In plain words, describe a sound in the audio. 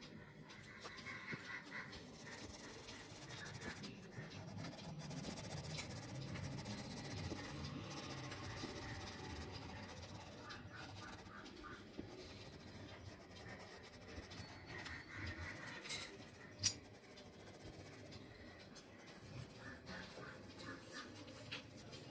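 A crayon scratches on paper.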